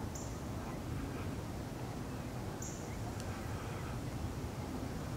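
Water ripples softly as geese swim.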